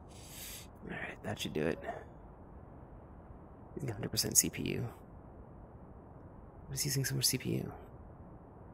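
A man talks in short bursts.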